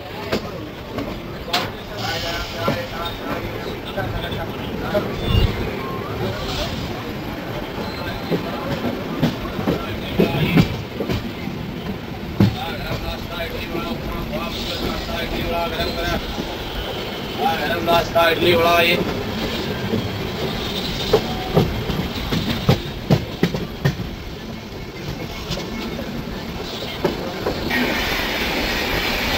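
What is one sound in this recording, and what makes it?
Wind rushes past an open train door.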